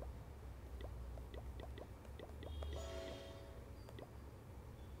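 Short soft clicks sound as game menu buttons are tapped.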